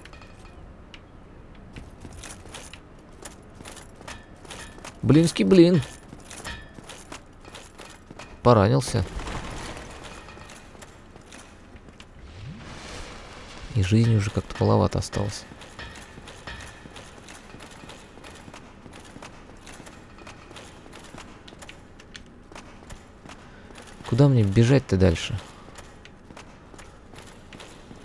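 Armored footsteps clank quickly on a stone floor.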